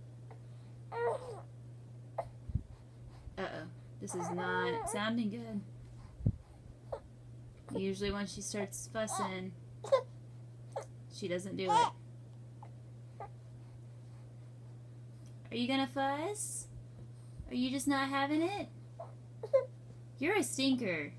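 A baby fusses and whines close by in short bursts.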